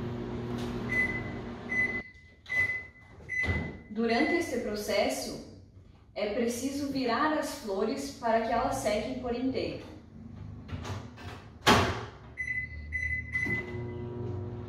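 A microwave beeps as its buttons are pressed.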